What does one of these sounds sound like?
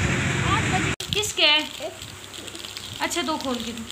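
A young child speaks up close.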